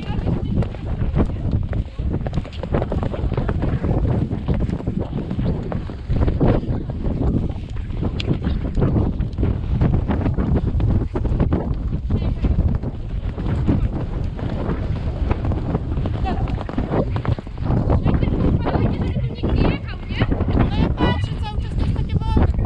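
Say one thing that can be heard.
Horses' hooves thud steadily on sand.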